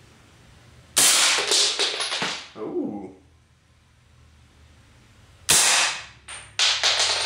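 A gun fires with a sharp bang that rings out in the room.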